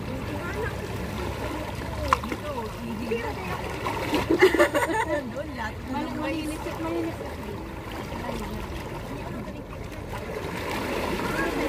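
Sea water laps against rocks.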